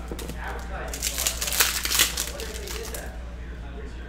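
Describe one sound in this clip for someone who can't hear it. Plastic wrapping crinkles as it is peeled off.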